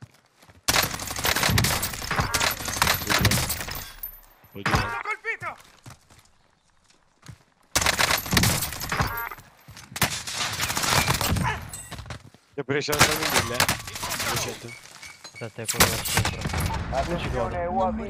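Rapid gunfire bursts loudly in a video game.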